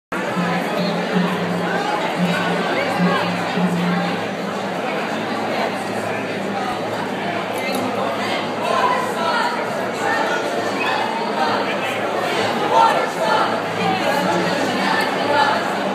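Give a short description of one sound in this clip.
A crowd of men and women chatter loudly all around in an echoing hall.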